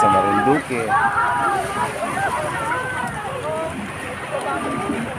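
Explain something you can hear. A young man talks cheerfully and close up.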